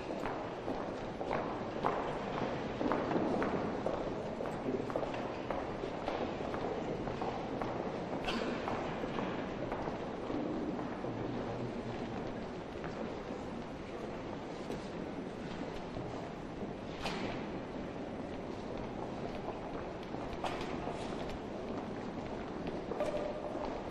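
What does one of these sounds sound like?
A crowd murmurs quietly in a large echoing hall.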